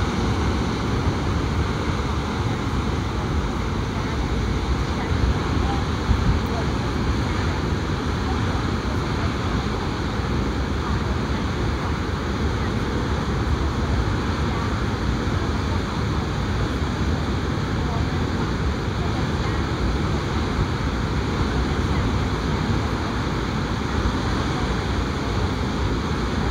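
Rushing water roars loudly and steadily.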